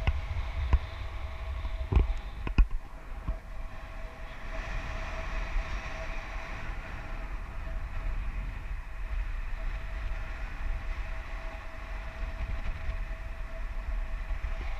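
Wind rushes and buffets steadily past the microphone high in open air.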